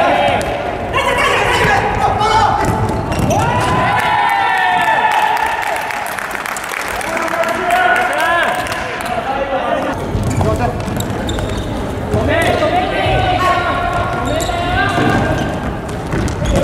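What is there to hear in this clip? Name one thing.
A ball is kicked and thuds on the floor.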